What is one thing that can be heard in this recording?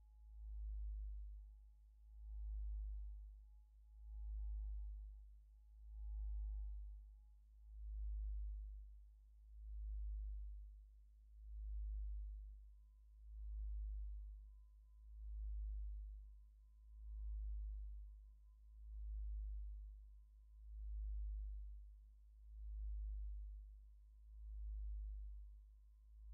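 A synthesizer plays a deep, slowly pulsing bass drone.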